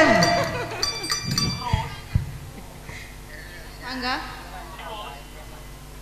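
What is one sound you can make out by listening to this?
A woman sings into a microphone over loudspeakers.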